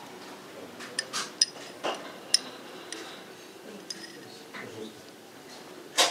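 A fork clinks against a ceramic bowl.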